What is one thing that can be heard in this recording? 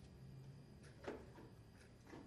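A glass clinks down on a table.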